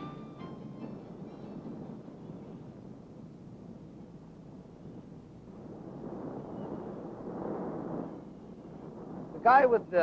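Waves break and wash against rocks.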